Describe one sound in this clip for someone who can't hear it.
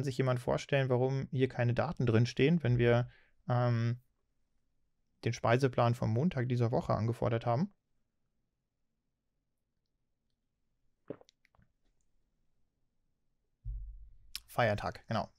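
A man talks calmly and close to a microphone, with pauses.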